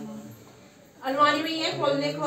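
A woman speaks loudly and with animation close by.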